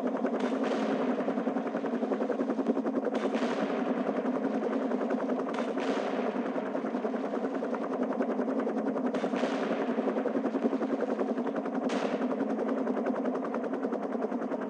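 A helicopter's rotor blades thump rapidly and steadily.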